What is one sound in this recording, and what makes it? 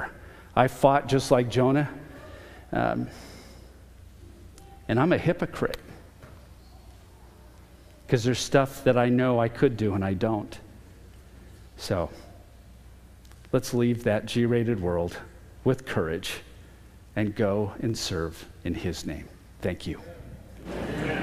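A middle-aged man speaks calmly through a microphone in a large echoing hall.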